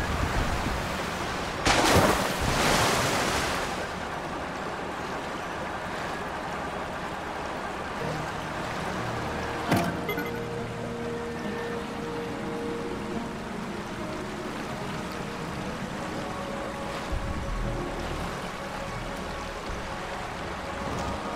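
Water rushes steadily past a moving raft.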